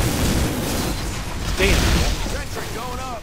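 An explosion booms with a burst of crackling fire.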